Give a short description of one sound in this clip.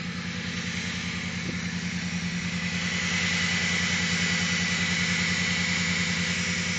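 A car engine idles, heard close up in the open engine bay.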